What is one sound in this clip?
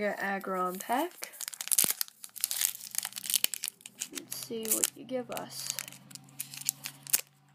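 A foil wrapper crinkles and tears as hands open it.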